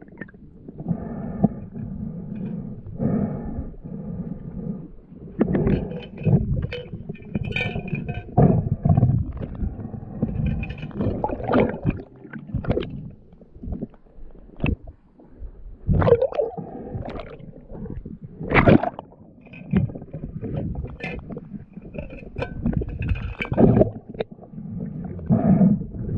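Water churns and thumps in muffled underwater rumbles.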